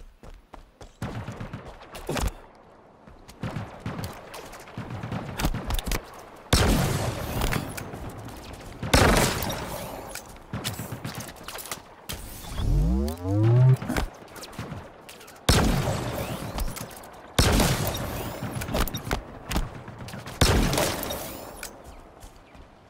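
Gunfire bursts in rapid volleys.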